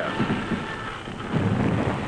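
A man speaks into a field radio handset.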